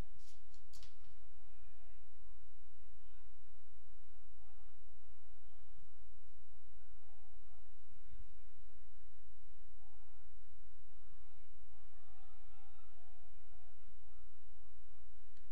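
Young women call out to each other across an open field, far off.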